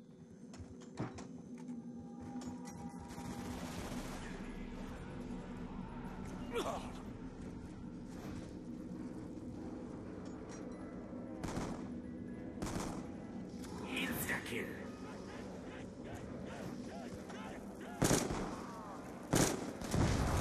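Guns fire in sharp, separate shots.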